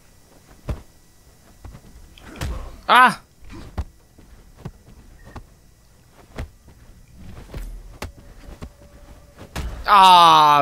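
Sharp blows and thuds of a fight land in quick bursts.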